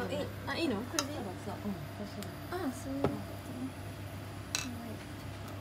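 A metal ladle clinks against a pan.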